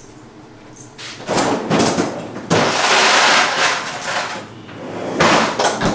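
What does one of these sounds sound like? A refrigerator door opens and closes.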